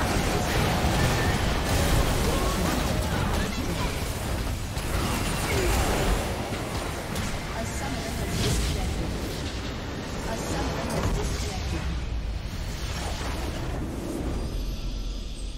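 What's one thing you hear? Video game spells crackle, whoosh and boom in a busy battle.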